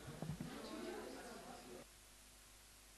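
A seated audience murmurs quietly in a room.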